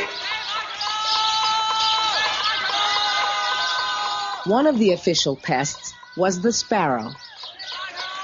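A man shouts loudly through cupped hands.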